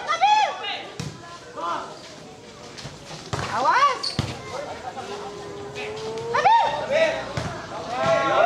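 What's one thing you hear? A volleyball is hit with a thud.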